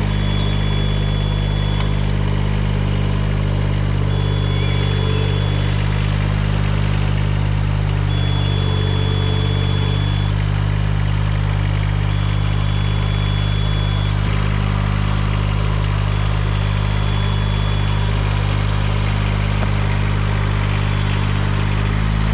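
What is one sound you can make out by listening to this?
A machine's warning alarm beeps at even intervals.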